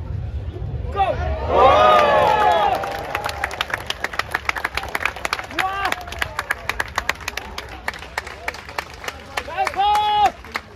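Men and women in a crowd cheer and whoop loudly.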